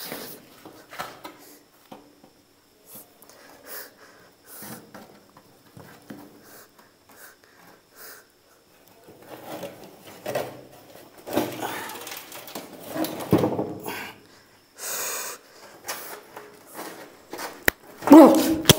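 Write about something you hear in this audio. A wooden box scrapes and knocks on a concrete floor.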